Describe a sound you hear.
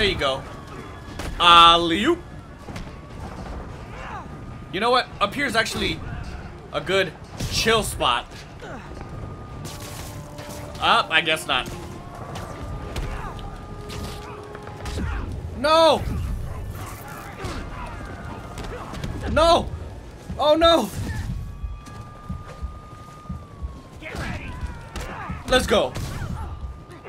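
Punches and kicks land in a fistfight.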